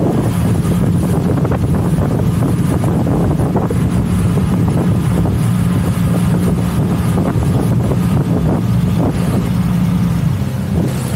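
A boat engine drones loudly and steadily.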